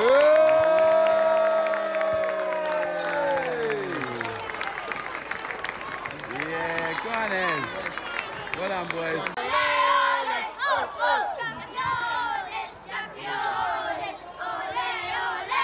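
A crowd of adults and children claps and cheers in a large echoing hall.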